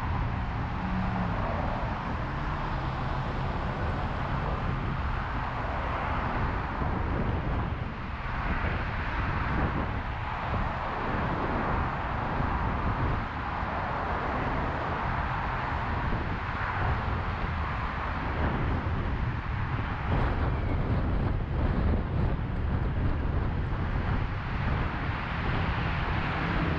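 Other traffic rushes past nearby.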